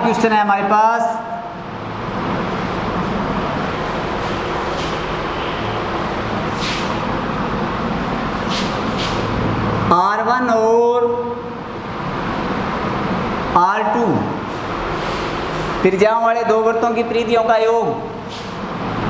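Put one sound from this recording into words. A young man speaks calmly into a microphone in bursts.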